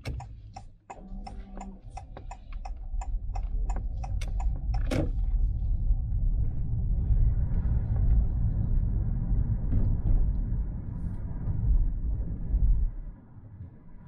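A car engine hums and tyres roll on the road.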